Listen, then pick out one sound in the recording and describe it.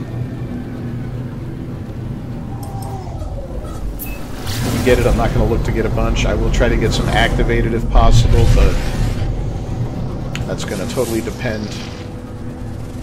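A spaceship engine rumbles low and steadily.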